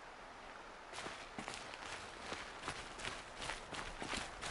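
Footsteps run quickly over gravelly ground.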